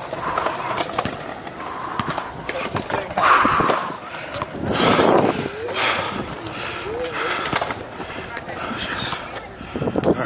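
Skateboard wheels roll and grind over concrete.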